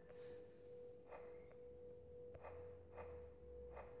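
Soft magical pops sound as puffs of smoke burst.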